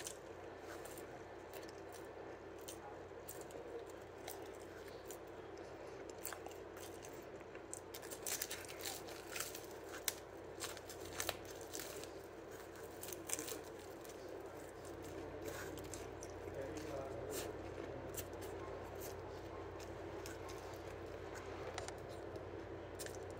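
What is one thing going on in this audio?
A young man chews and crunches food close by.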